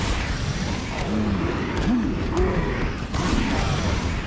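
Heavy blows thud and crack in a brawl.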